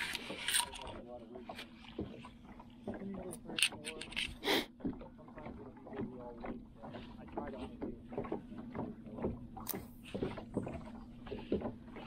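A fishing reel clicks steadily as line is wound in.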